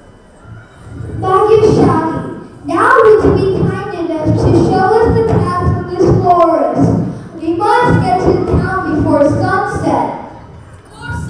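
A young boy speaks loudly and with expression in an echoing hall.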